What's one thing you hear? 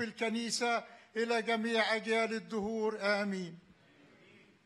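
An elderly man speaks with feeling into a microphone, close by.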